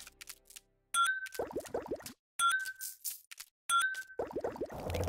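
Short chimes sound as menu items are picked.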